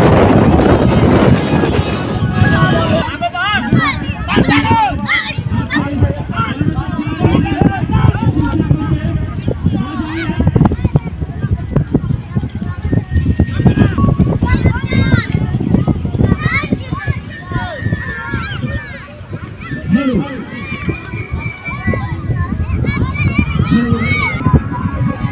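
A crowd of boys and young men shouts and cheers outdoors.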